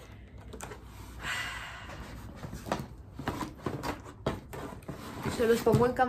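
Cardboard scrapes and thumps as it is handled.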